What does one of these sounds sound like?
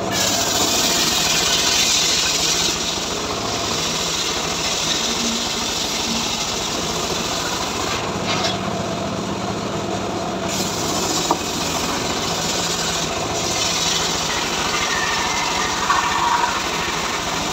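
An engine drones steadily.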